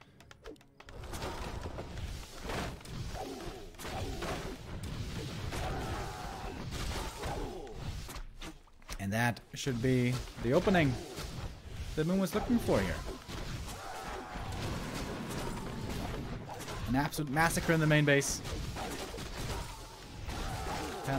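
A man comments with animation through a microphone.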